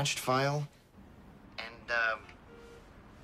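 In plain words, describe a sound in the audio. A young woman talks on a phone.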